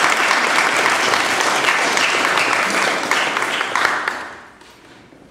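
An audience applauds in a large hall, then the clapping dies away.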